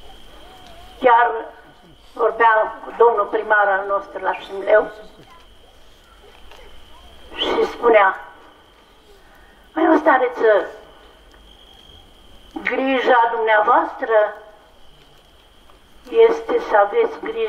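A man chants in short phrases through a microphone.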